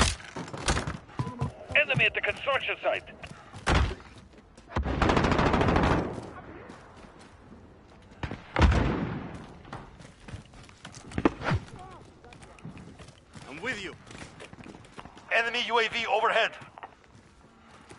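Gunshots crack sharply, in short bursts.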